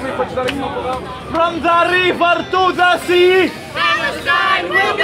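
A young man shouts a chant close by.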